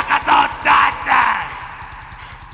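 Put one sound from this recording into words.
A man sings loudly into a microphone, his voice echoing.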